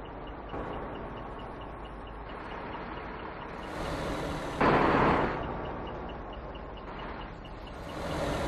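Tyres roll on asphalt with a steady rumble.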